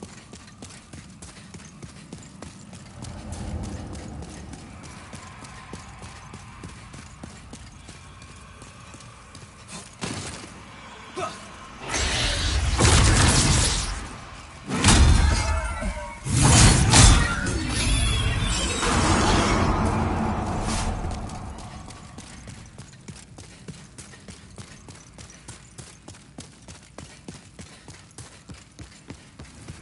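Armoured footsteps tread steadily on stone.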